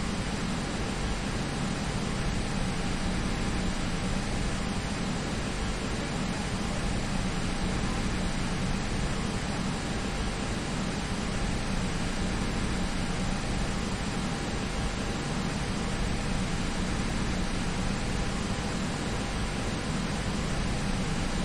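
A jet engine hums steadily as an airliner taxis.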